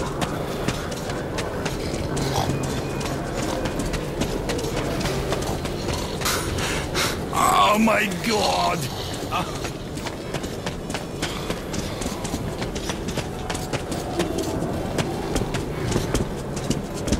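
Footsteps crunch steadily over gravel and wooden boards.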